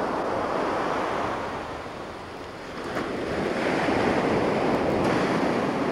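Sand pours out of a boot and patters onto the ground.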